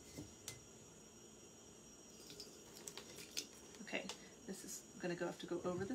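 Liquid pours from a pot through a strainer.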